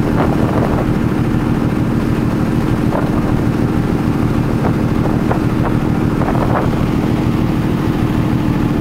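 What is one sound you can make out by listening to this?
Water rushes and churns along the hull of a moving ferry.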